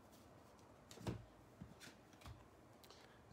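Cards rustle and slide softly as they are flipped by hand.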